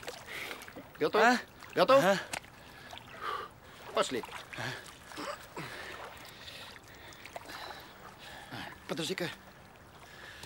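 A young man speaks calmly nearby in short phrases.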